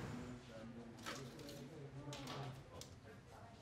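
Plastic boxes clatter and knock as a woman sorts supplies.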